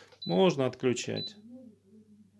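An appliance beeps as a button is pressed.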